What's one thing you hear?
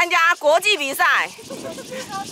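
A woman calls out cheerfully with a singsong voice.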